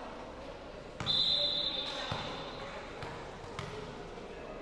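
A volleyball thuds as it is struck.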